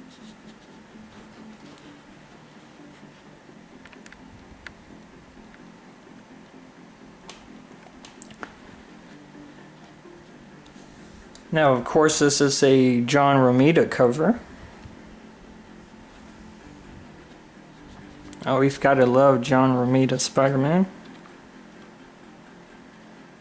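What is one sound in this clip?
Stiff paper rustles and taps softly as a comic book is handled and opened.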